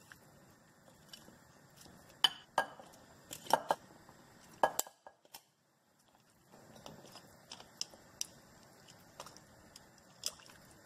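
Water bubbles and simmers in a pot.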